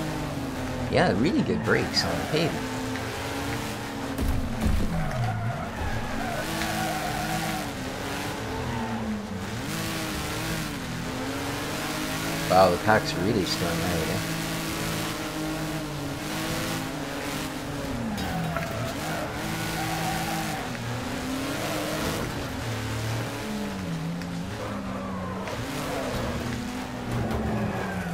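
A racing car engine roars, revving up and dropping as it shifts gears.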